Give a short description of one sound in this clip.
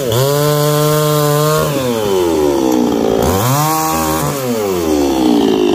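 A chainsaw cuts through a branch.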